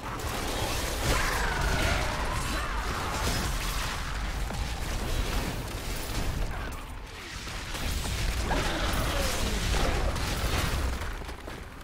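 Game magic blasts and crackling effects play throughout.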